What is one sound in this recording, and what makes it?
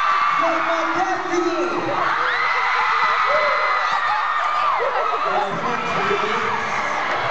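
A young man speaks through a loudspeaker over the crowd.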